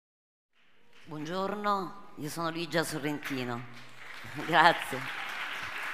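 A woman speaks with animation into a microphone in a large hall.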